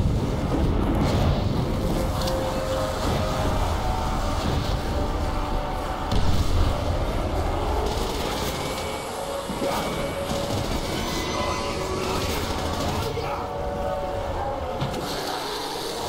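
Wind howls loudly outdoors.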